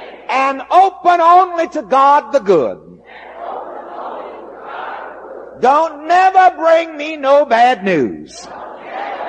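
A man preaches with animation, his voice rising and falling.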